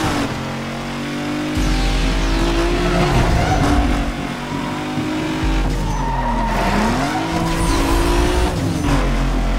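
A car engine roars at high revs, its pitch rising and dropping with gear changes.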